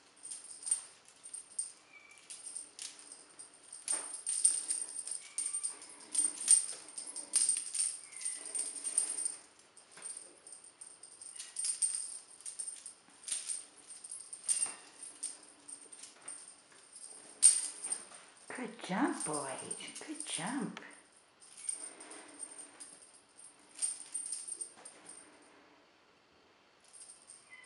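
Kittens' paws patter and scuffle on a hard floor.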